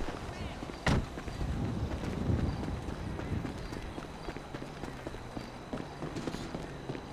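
Footsteps run over gravel and dirt.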